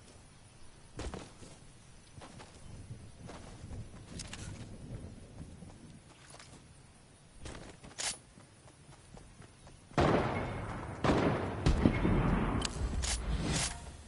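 Sharp gunshots crack in quick bursts.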